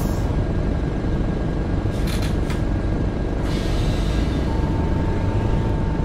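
A turn signal ticks.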